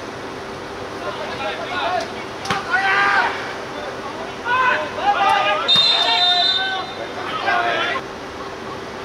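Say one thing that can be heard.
Young players shout to each other on an open field.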